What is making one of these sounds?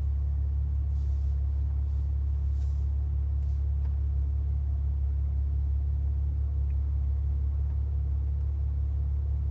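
A finger taps on a touchscreen a few times.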